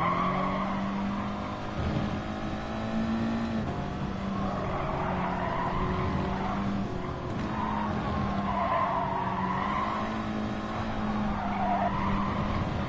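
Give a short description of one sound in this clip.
A racing car engine roars steadily, rising and falling in pitch as it shifts gears.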